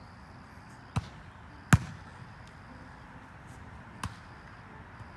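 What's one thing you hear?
A volleyball is hit with sharp slaps outdoors.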